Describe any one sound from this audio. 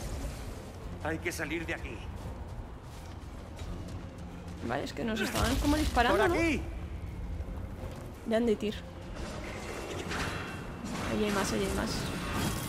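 A young woman talks casually into a microphone close by.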